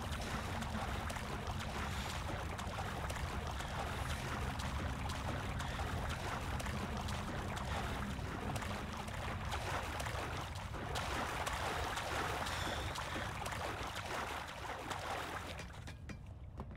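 Water splashes and sloshes as a man swims.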